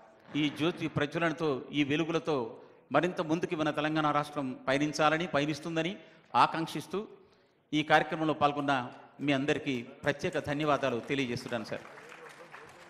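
A man speaks loudly over a loudspeaker in a large hall.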